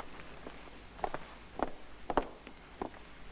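Footsteps knock on a hard floor.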